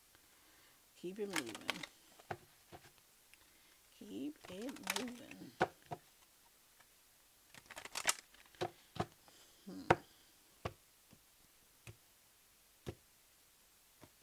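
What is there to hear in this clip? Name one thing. Playing cards are shuffled, riffling and tapping together.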